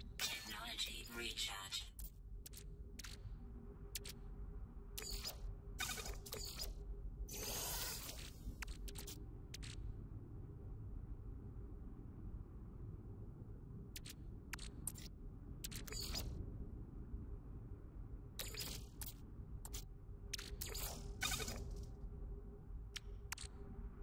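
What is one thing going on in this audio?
Short electronic menu clicks and blips sound at uneven intervals.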